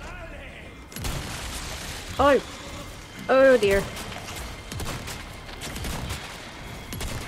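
A shotgun fires loudly several times.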